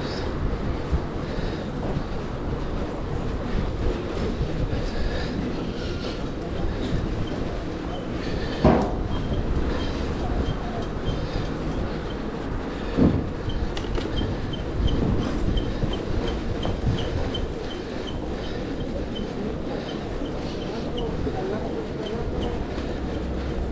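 Wind rushes and rumbles past outdoors.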